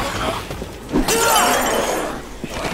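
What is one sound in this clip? Glass shatters loudly.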